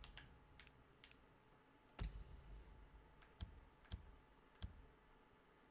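Soft interface clicks sound as menu selections change.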